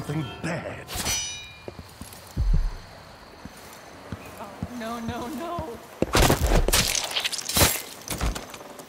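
A blade stabs into a body with a wet, sharp thud.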